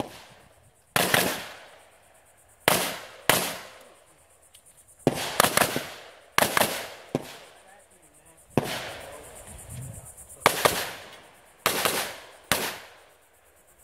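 Pistol shots crack one after another outdoors, each ringing out briefly.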